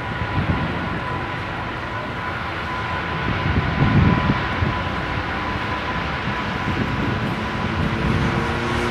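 A jet airliner's engines roar and whine steadily as it rolls along a runway.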